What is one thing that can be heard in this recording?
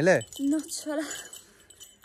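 A young woman talks briefly nearby.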